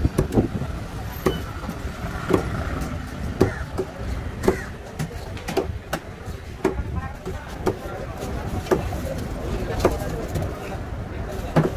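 A knife chops through fish onto a wooden board with sharp, regular knocks.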